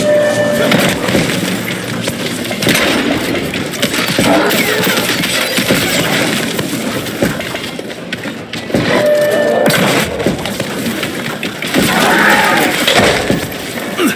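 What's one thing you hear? A creature shrieks and snarls.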